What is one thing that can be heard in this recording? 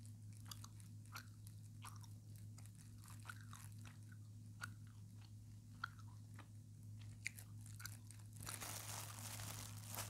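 Plastic crinkles and crackles close to a microphone.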